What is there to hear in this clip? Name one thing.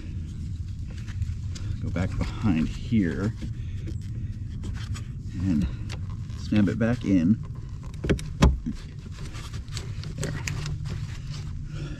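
Wiring clicks and rattles as hands fit a connector.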